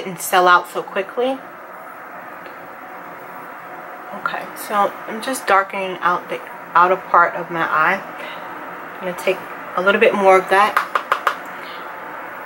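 A young woman talks calmly and close to the microphone.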